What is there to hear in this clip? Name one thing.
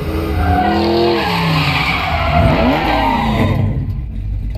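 A car engine revs hard.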